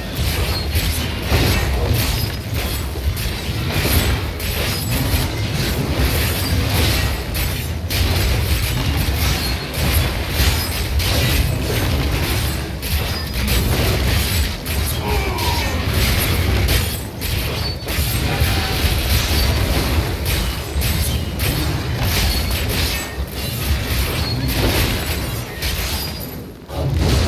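Monsters screech and growl as they are struck.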